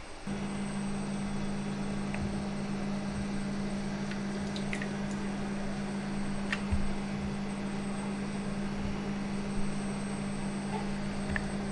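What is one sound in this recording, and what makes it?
Liquid sloshes and splashes softly as something is dipped into a pot.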